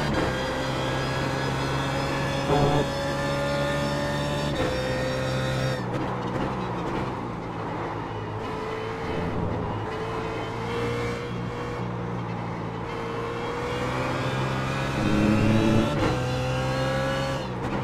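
A racing car engine roars steadily, rising and falling in pitch as the car shifts gears.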